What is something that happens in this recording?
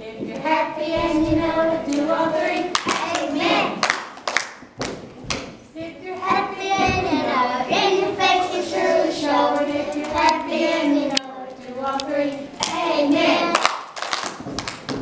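A group of young children sing together in a room that echoes.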